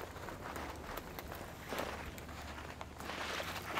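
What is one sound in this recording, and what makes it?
Twigs and branches snap and rustle as people push through them.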